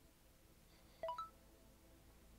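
A short chime rings out.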